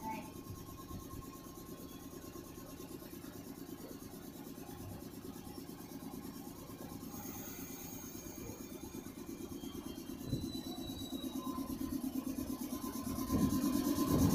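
A train engine idles with a steady low hum.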